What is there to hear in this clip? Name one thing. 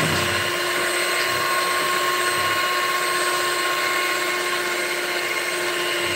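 An electric hand mixer whirs steadily.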